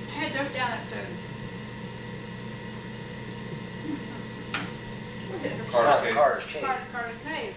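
An elderly woman talks casually nearby.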